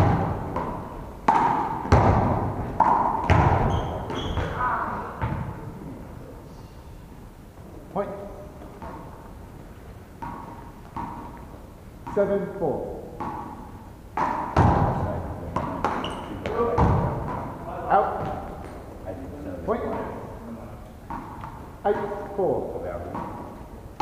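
A ball bounces and thuds off walls in a large echoing hall.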